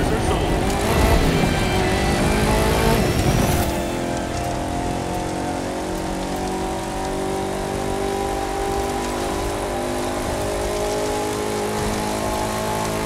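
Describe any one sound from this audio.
Tyres rumble over rough grass.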